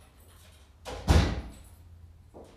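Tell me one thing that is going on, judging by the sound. A door shuts with a thud.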